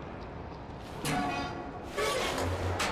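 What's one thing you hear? A metal valve wheel creaks and squeals as it turns.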